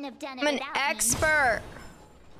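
A magical burst crackles and whooshes in a game.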